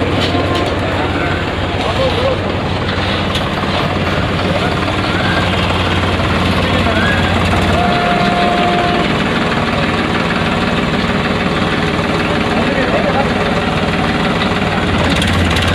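A tractor engine idles with a low steady rumble.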